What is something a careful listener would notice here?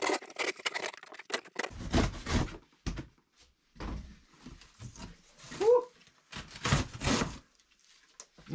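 Dry straw packing rustles as it is lifted.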